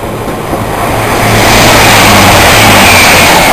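A train rushes past close by with a loud rumble.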